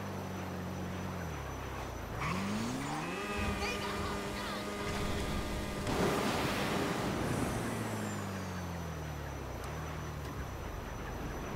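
A motorbike engine revs up and down.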